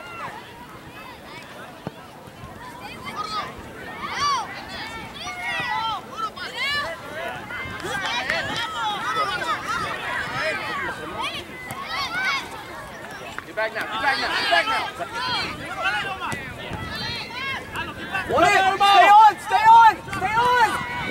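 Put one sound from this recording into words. A ball thuds as a child kicks it.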